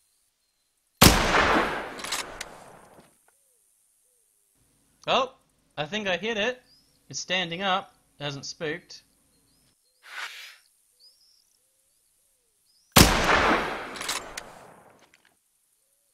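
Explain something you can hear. A rifle shot cracks loudly and echoes away outdoors.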